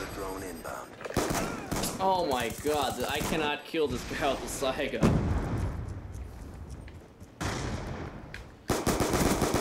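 Pistol shots crack in quick bursts.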